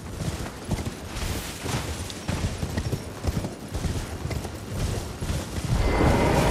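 Hooves thud rapidly as a horse gallops over grass.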